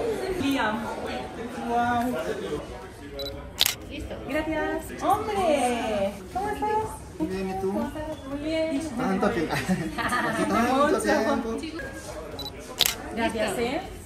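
Young women talk and laugh excitedly nearby.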